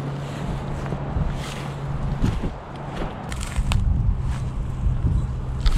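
Dry grass rustles underfoot.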